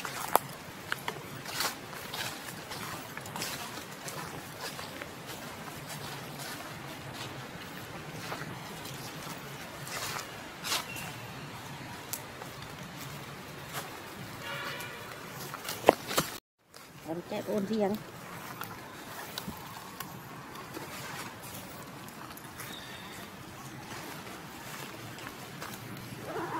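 Dry leaves rustle and crackle under a monkey's feet.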